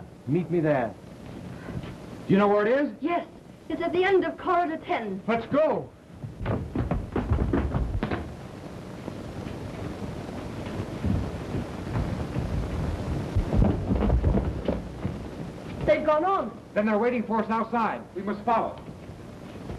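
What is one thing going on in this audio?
A man speaks tensely, heard through an old, muffled recording.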